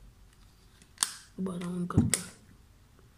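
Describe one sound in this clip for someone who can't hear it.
A plastic plug clicks as it is pushed into a socket.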